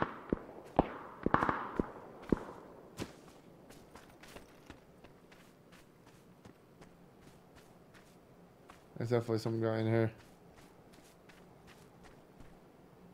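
Footsteps crunch over dry dirt and grass.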